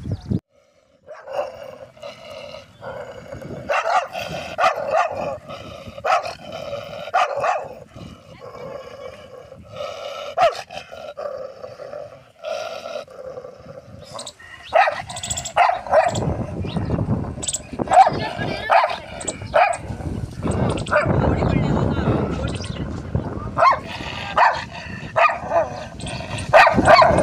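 A dog whimpers and whines close by.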